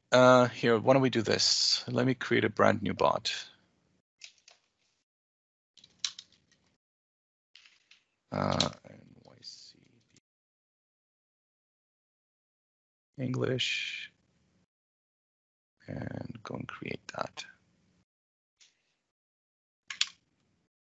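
A woman speaks calmly over an online call, in short bursts with pauses.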